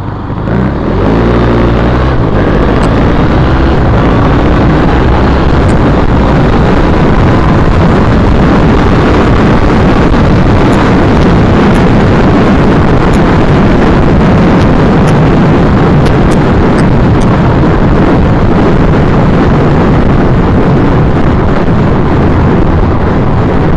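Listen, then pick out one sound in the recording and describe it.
Wind roars loudly past as the vehicle speeds along a road.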